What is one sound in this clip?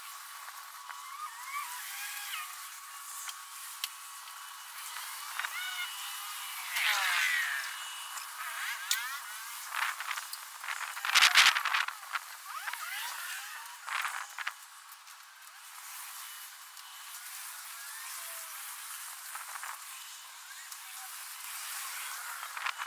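Paint rollers roll and swish across a floor.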